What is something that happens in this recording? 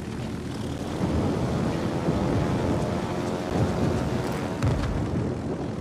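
Anti-aircraft shells burst with dull booms.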